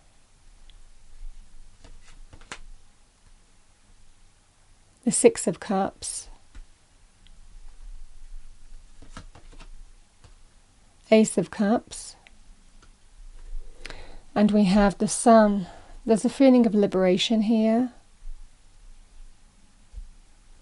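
Playing cards are shuffled and laid softly on a table.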